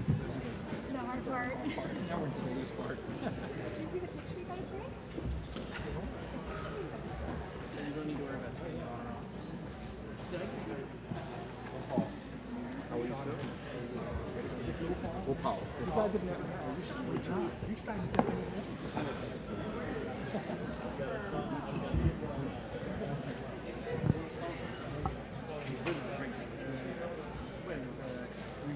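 A crowd of men and women chatter all around in a large echoing hall.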